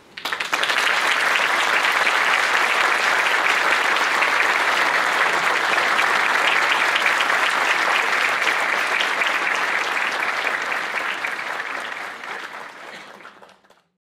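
An audience claps loudly and steadily, then the applause fades away.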